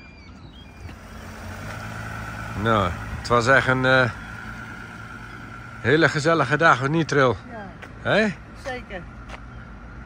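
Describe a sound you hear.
A van engine hums as the van drives slowly away.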